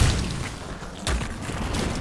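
Footsteps thud on rock.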